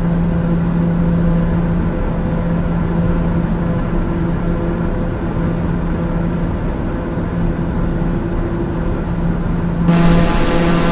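A single-engine turboprop drones in cruise, muffled inside the cabin.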